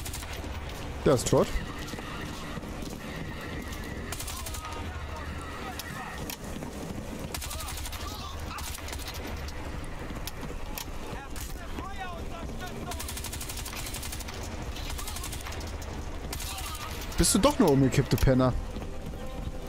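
A rifle fires loud short bursts.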